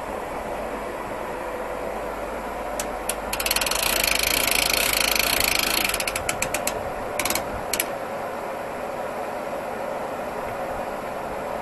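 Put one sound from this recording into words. A portable sawmill's engine runs.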